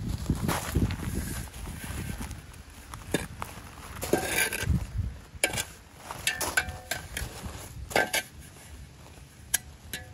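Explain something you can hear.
A metal digging tool strikes stones with sharp clanks.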